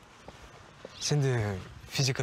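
A young woman answers softly.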